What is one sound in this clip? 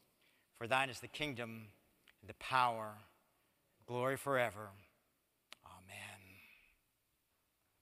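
A congregation prays aloud together in a large echoing hall.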